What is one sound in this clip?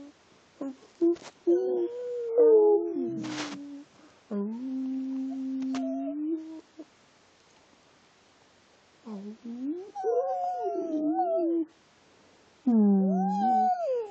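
A dog whines and howls close by in long, wavering cries.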